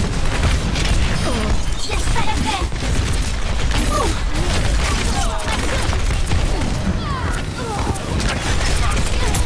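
Rapid gunfire blasts and crackles without pause.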